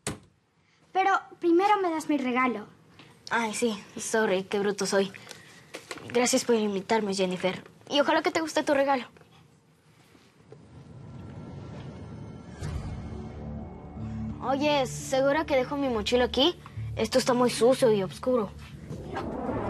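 A young boy speaks close by.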